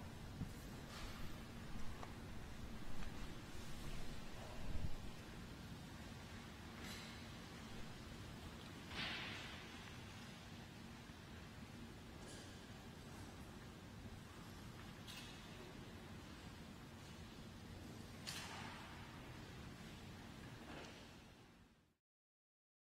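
Footsteps and light knocks echo through a large, reverberant hall.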